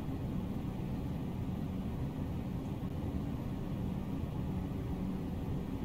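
A large fan whirs steadily with a low hum.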